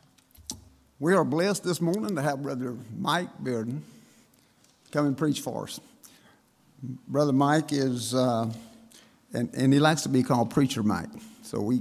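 An elderly man speaks with feeling through a microphone in a large room.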